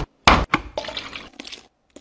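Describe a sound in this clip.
Milk pours into a jug.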